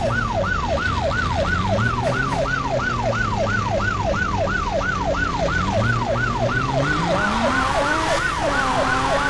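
A police siren wails in fast, rising and falling sweeps.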